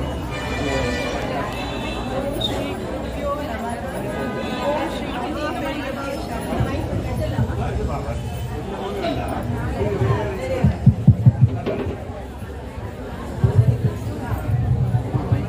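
A group of women sing together through a microphone.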